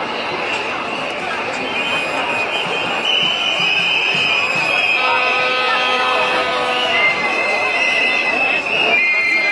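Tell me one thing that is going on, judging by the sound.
A large crowd of men and women talks and murmurs outdoors.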